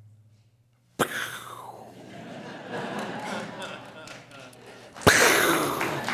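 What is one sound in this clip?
A large audience laughs in an echoing hall.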